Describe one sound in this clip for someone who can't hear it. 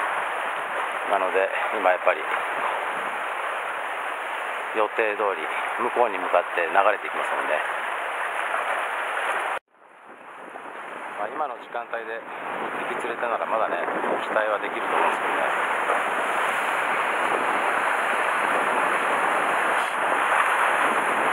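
Waves wash and splash against rocks.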